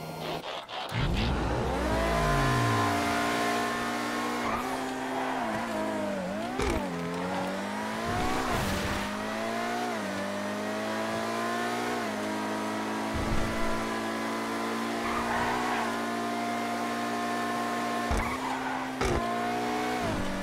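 A sports car engine roars, revving up and down through gear changes.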